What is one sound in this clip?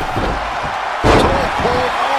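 A body slams hard onto the mat.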